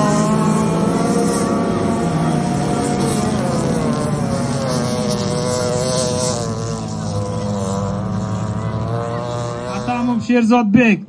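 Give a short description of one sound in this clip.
Car engines roar as cars race over dirt.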